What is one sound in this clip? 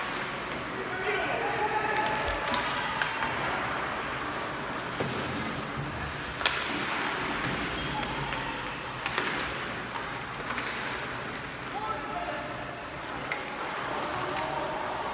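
Spectators near the rink talk and call out.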